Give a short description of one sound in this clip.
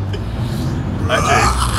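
A man speaks close by, casually.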